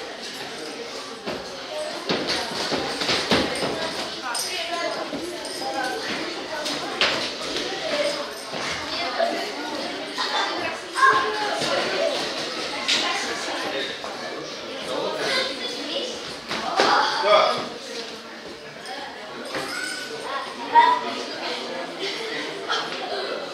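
A crowd of people talks and calls out in a large echoing hall.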